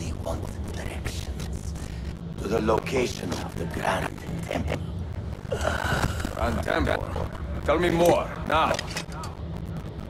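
A middle-aged man speaks weakly in a strained, dying voice.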